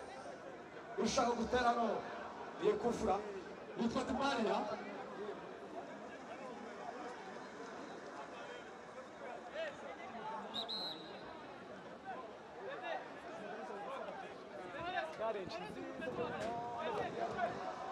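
Young men talk and call out to each other outdoors.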